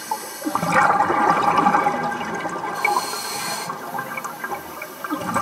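Water gurgles and swirls, heard from underwater.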